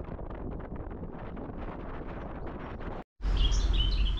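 A river flows gently.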